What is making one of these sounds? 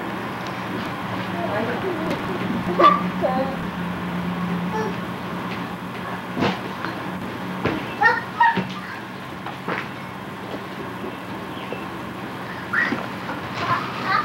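A toddler babbles softly nearby.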